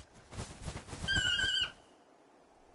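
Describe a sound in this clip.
A large bird squawks with high chirping calls.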